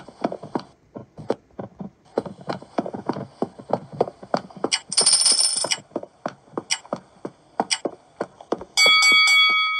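Game footsteps patter quickly on a hard floor.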